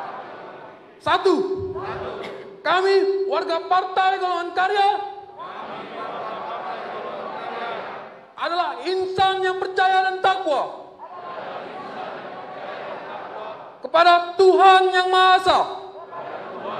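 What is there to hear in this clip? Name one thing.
A man reads out loudly through a loudspeaker in a large echoing hall.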